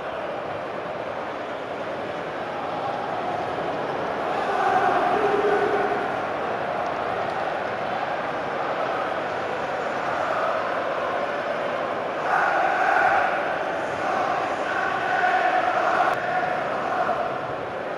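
A large stadium crowd roars and cheers steadily, with swells.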